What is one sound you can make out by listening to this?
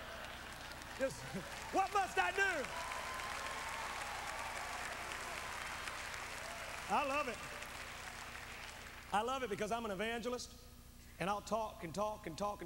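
A man preaches with fervour through a microphone in a large echoing hall.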